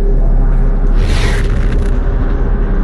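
A teleporter whooshes in a loud rush.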